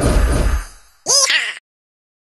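A short cheerful jingle plays at the end.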